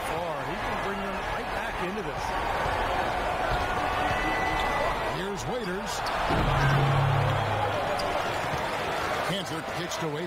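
A large indoor crowd murmurs and cheers steadily in an echoing arena.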